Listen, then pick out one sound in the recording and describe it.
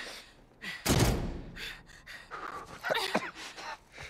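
A girl lands with a thump on a floor.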